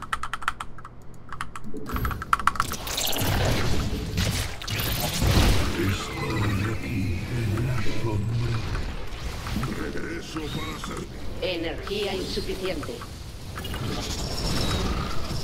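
Game weapons fire and explode in a battle.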